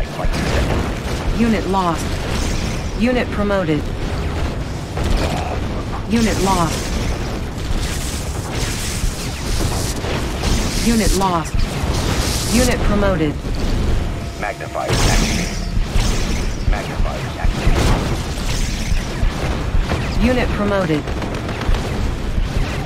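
Rapid gunfire and laser blasts crackle in a battle.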